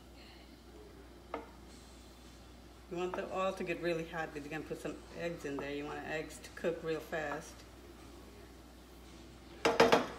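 A wooden spatula scrapes and taps against a metal pan.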